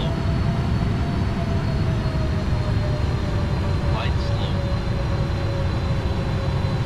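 Jet engines rumble steadily.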